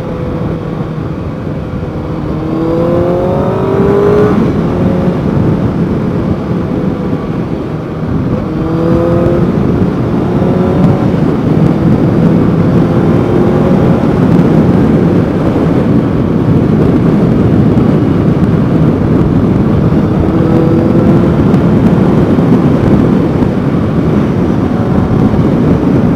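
Wind rushes loudly past the rider's helmet.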